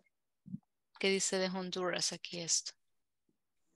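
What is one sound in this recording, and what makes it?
A woman speaks clearly over an online call.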